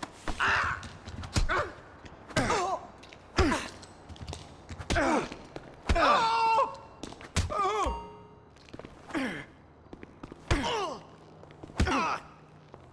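Fists thud in heavy punches, again and again.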